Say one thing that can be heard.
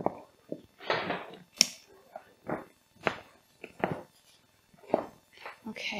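A buckle clicks as it is fastened.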